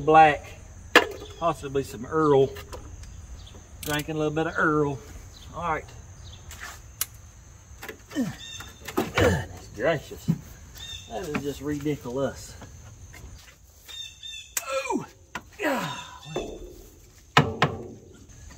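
Metal tools clink and knock against an engine.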